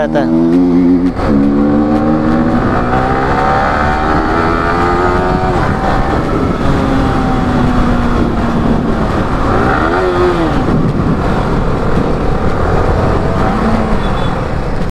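A motorcycle engine revs up and down through the gears, close by.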